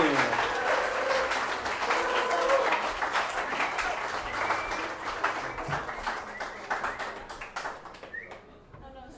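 A fiddle plays a lively tune.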